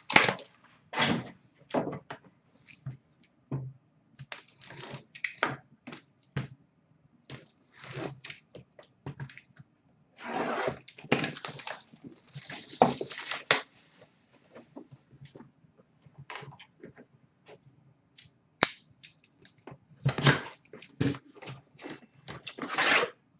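A cardboard box rustles and scrapes close by.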